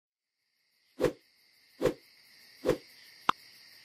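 Game tiles shuffle with a few soft whooshing thuds.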